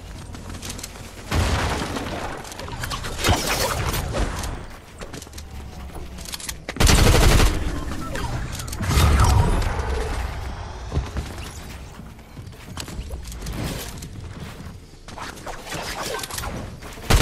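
Footsteps patter quickly on wooden floors.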